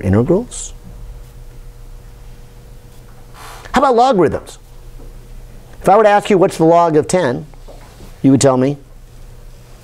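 An older man speaks calmly in short phrases with pauses, close by.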